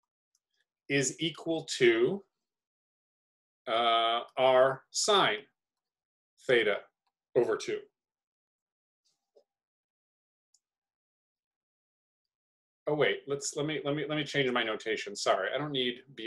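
A young man explains calmly into a close microphone, pausing now and then.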